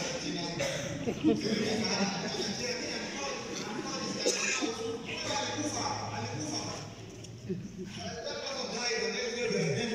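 A man preaches through a loudspeaker in a large echoing hall.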